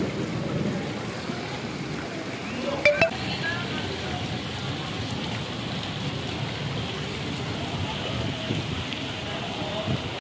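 Floodwater rushes and splashes steadily.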